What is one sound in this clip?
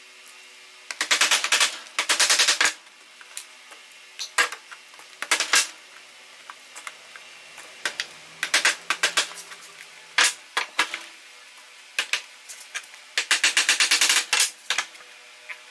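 A small hammer taps rapidly on wood.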